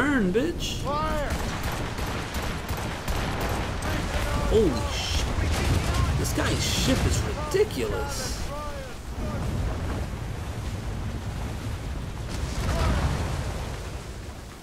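Cannons boom in rapid volleys.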